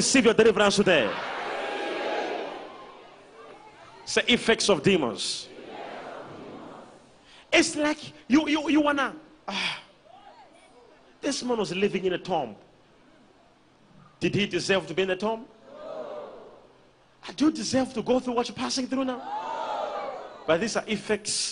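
A large crowd cheers and calls out in response.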